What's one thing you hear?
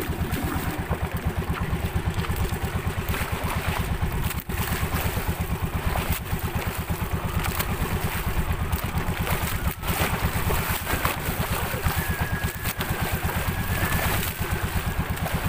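Water splashes and rushes along a boat's hull.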